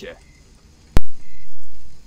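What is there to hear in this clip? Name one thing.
A lighter lid clicks open.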